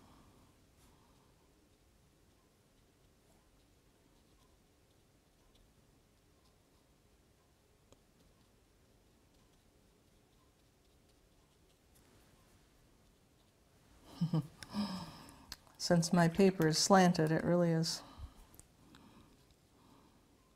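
A paintbrush dabs and strokes softly on paper.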